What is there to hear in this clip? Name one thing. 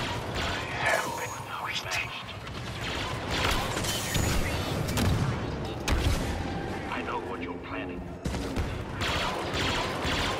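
Laser blasters fire in rapid shots.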